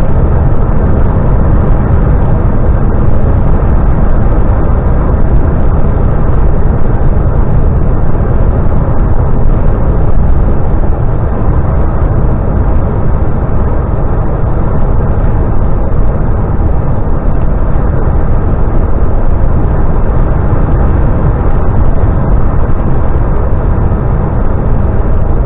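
Tyres roar steadily on a road.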